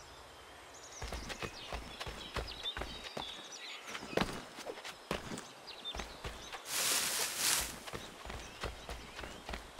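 Quick footsteps run over grass and dirt.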